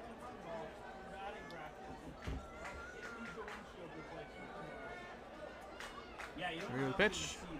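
A crowd murmurs faintly.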